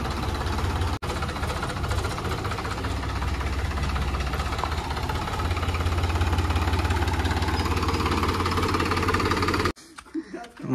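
A tractor engine idles with a steady, low rumble.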